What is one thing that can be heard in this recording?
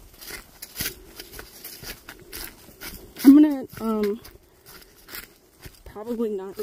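Footsteps crunch and rustle on dry leaves and twigs.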